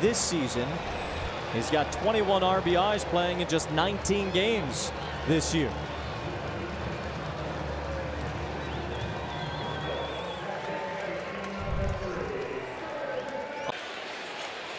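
A crowd cheers and applauds in a large stadium.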